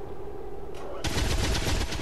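A flamethrower roars with a loud hiss.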